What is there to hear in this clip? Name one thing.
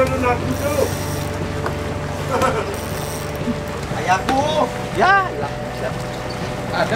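A fishing reel whirs as line is pulled.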